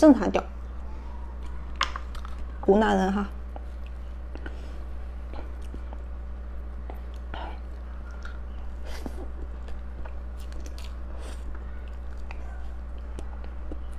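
A young woman eats soft cream cake close to a microphone, with quiet wet mouth sounds.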